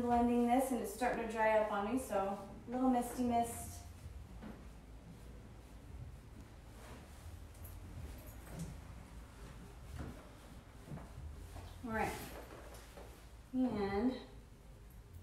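A young woman talks calmly nearby.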